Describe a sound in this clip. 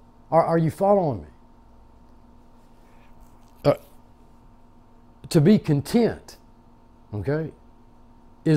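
An elderly man speaks slowly and calmly into a close microphone, with long pauses.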